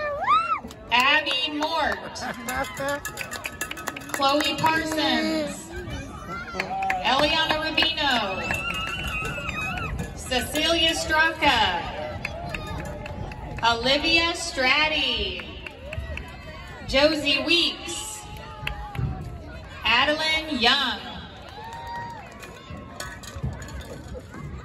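Young girls clap their hands in time.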